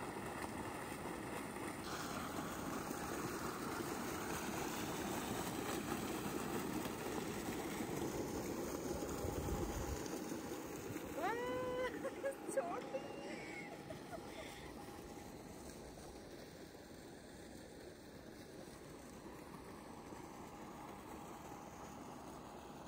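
Water gushes from a pipe and splashes steadily.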